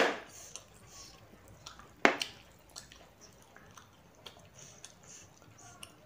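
A woman chews food close by, smacking her lips.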